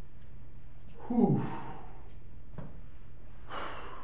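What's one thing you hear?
A man speaks briefly and calmly, close by.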